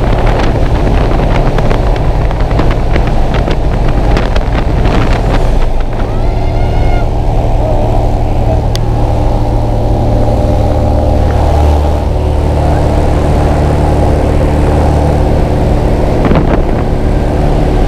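Wind rushes loudly past an open door.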